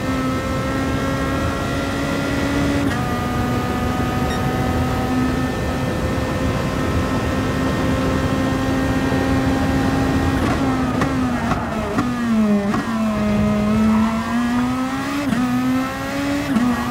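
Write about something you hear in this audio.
A racing car engine roars at high revs, shifting gears and dropping in pitch under braking before revving up again.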